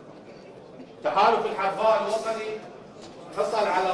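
A man speaks calmly through a loudspeaker in a large echoing hall.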